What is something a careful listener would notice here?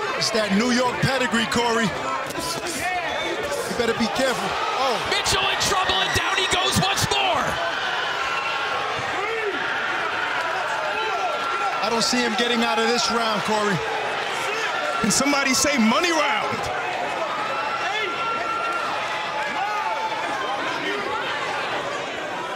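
A crowd cheers and shouts in a large echoing arena.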